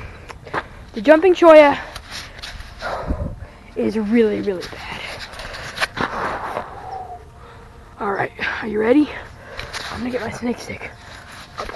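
A young boy talks excitedly, very close to the microphone.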